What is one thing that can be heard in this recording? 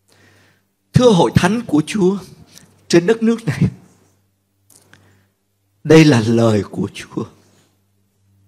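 A middle-aged man speaks slowly and earnestly into a microphone, with pauses.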